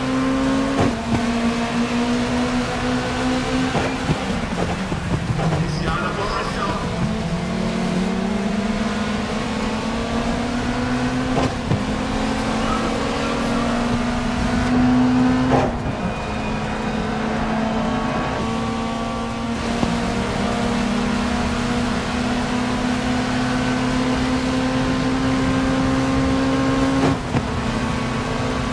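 A racing car engine roars at high revs, shifting gears as it speeds up and slows.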